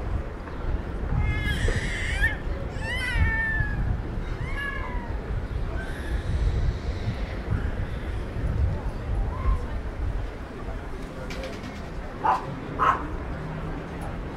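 Light traffic hums along a street nearby.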